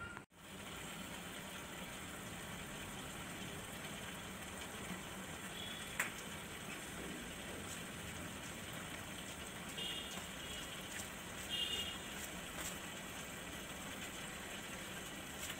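Air bubbles fizz and gurgle steadily in water.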